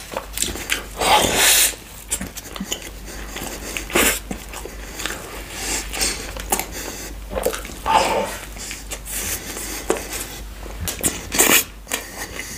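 A man chews and smacks his lips close to a microphone.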